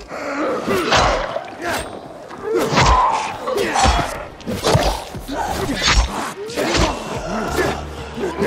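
A blade strikes flesh with heavy thuds.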